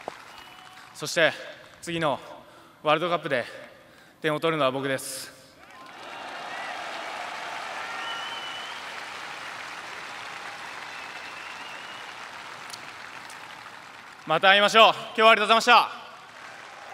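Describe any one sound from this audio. A young man speaks calmly into a microphone.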